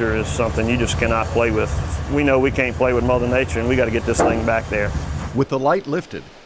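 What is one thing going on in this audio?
Heavy construction machines rumble with running engines.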